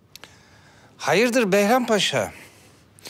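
A second man answers in a deep, measured voice, close by.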